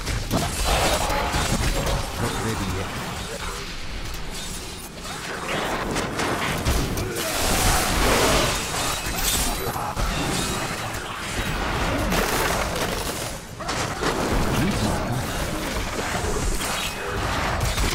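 Game spells crackle and explode in rapid bursts.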